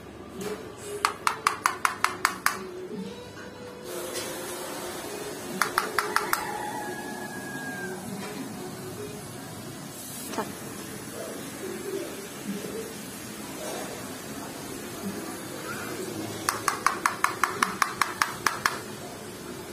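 A metal comb taps rapidly against a hard floor in quick bursts.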